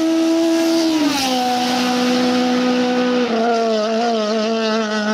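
A racing car engine roars loudly as the car speeds past and away.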